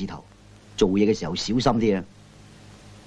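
A middle-aged man speaks firmly and sternly.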